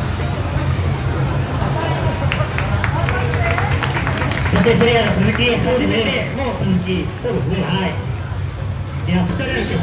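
A young woman speaks into a microphone, heard through loudspeakers.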